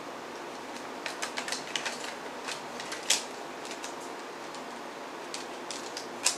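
A plastic disc case clicks and rattles in someone's hands.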